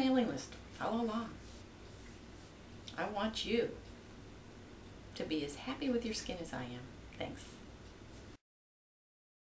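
A middle-aged woman speaks calmly and warmly, close by.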